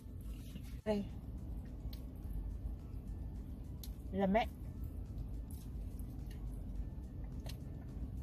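A small dog chews a treat.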